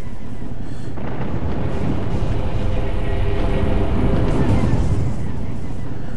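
A deep rumbling swells and fades.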